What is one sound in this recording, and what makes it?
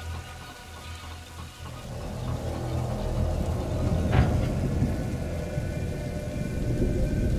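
A vehicle engine rumbles low and grows louder as it drives closer.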